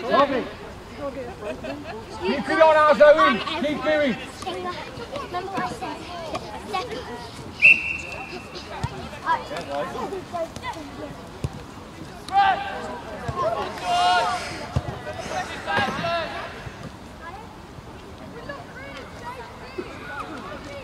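Young men shout to each other across an open pitch outdoors.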